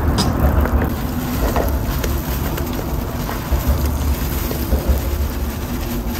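Leafy vegetables drop into a hot pan with a rustle.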